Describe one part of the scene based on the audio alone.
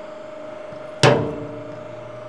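A steel nut cracks sharply under a hydraulic press.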